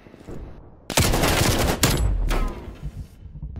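Gunfire cracks loudly in short bursts.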